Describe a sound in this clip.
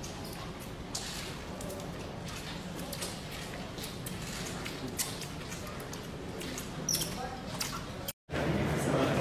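Footsteps tap on a hard floor in an echoing corridor.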